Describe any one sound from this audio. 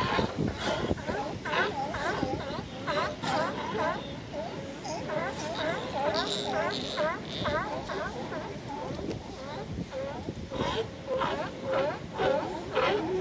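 Many sea lions bark loudly and repeatedly close by.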